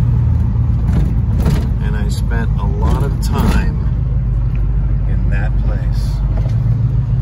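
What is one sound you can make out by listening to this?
A car engine rumbles steadily from inside the car as it drives.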